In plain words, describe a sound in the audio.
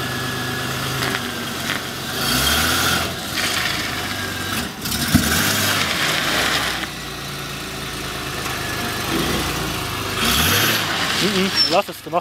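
Car tyres crunch slowly over gravel.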